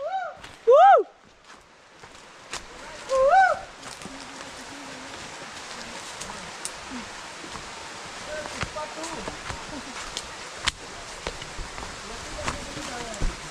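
Footsteps crunch and rustle through leaves and brush on a trail.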